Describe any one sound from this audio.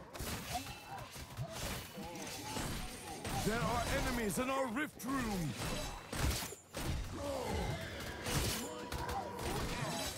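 Magic bolts zap and crackle in quick bursts.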